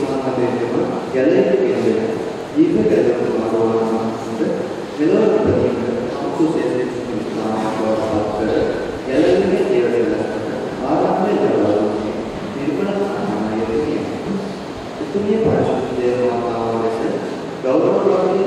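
A young man reads aloud steadily into a microphone in an echoing hall.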